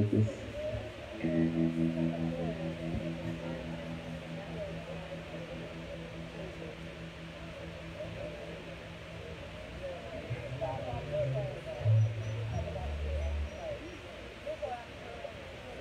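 An electric guitar plays a melody.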